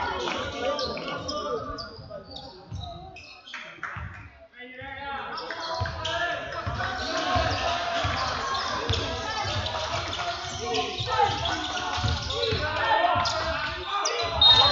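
Spectators chatter nearby.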